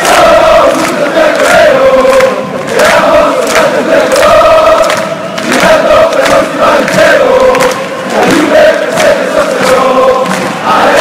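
Many people clap their hands in rhythm.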